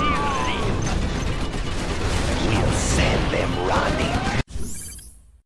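Explosions and gunfire rumble and crack in a battle.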